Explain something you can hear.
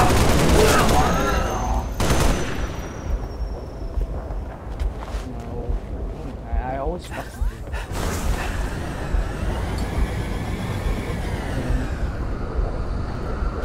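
A hover vehicle's engine hums and whines, rising and falling in pitch.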